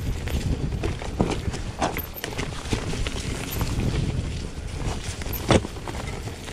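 A bicycle frame rattles and clanks over bumps.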